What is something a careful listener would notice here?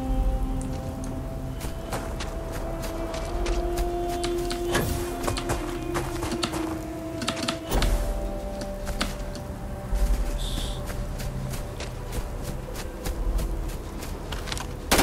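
Footsteps crunch over rough, stony ground.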